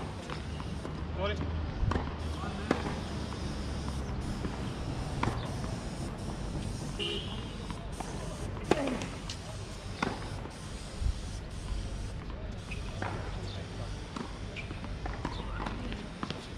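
Tennis shoes squeak on a hard court.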